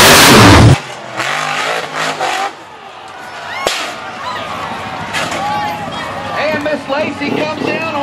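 An off-road buggy engine revs and whines.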